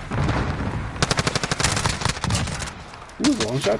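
A gun fires rapid bursts of shots.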